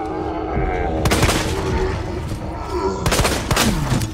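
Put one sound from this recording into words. A pistol fires several loud shots indoors.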